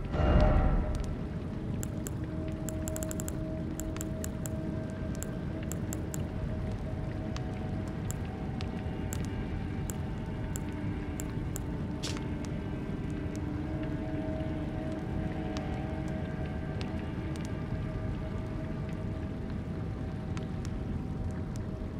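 Short soft clicks tick now and then as menu choices change.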